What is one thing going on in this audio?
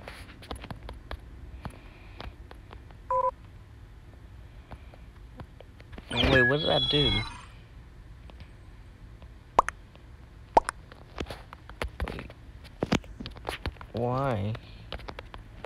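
Keys on a phone keyboard tap softly in quick succession.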